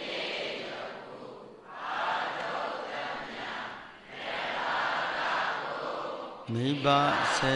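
A large crowd recites together in a hall, in long swelling phrases.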